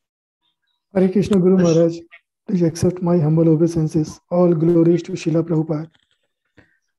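A younger man speaks warmly over an online call.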